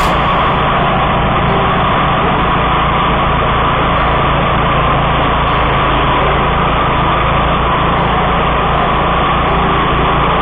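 Mower blades cut through tall dry grass.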